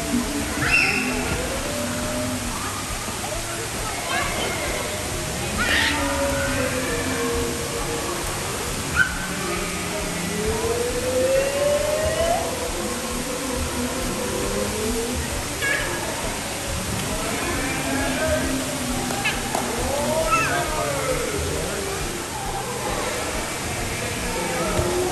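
Young children shout and squeal excitedly nearby.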